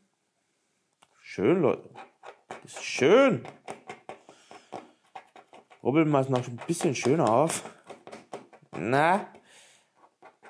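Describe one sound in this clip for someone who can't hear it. A plastic scraper scratches rapidly across a card.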